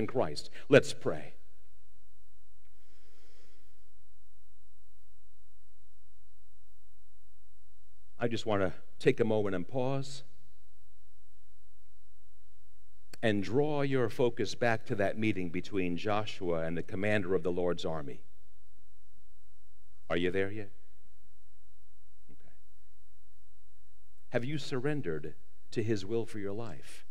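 An elderly man speaks calmly through a microphone, with long pauses.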